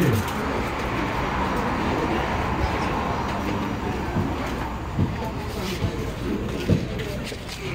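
Chess pieces click onto boards.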